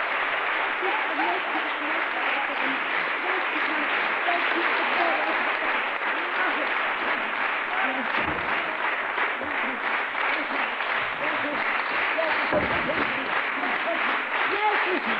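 A man sings in a large echoing hall.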